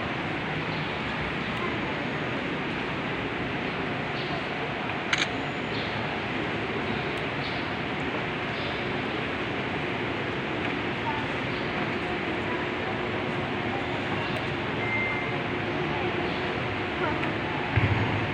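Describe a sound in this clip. A congregation murmurs and sings together in a large echoing hall.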